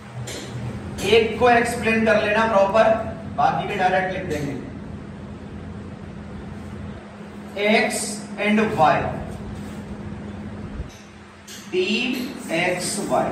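A man speaks in a lecturing tone nearby.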